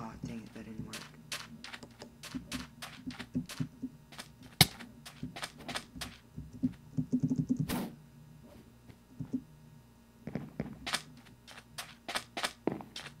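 Footsteps tread quickly on sand and wood in a video game.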